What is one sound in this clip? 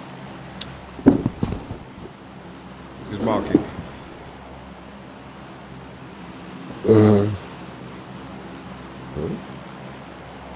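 A young man speaks in short bursts through a close microphone.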